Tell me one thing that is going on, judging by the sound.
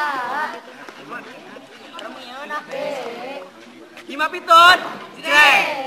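Young people speak and call out with animation outdoors.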